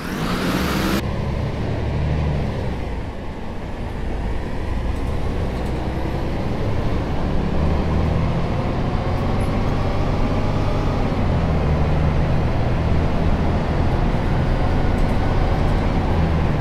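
A bus engine rumbles and rises in pitch as the bus speeds up.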